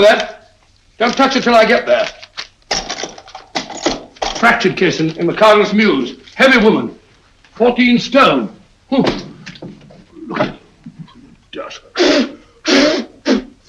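An older man speaks with animation, close by.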